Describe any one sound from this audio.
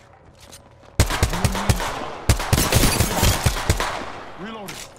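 A rifle fires rapid bursts in a video game.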